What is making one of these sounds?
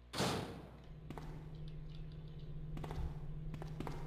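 Footsteps echo in a corridor.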